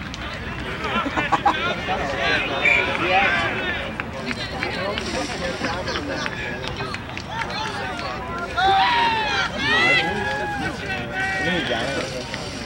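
Young women players shout to each other across the field.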